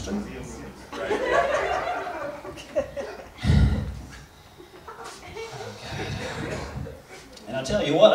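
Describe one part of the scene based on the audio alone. A man speaks with animation into a microphone over a loudspeaker in a hall with some echo.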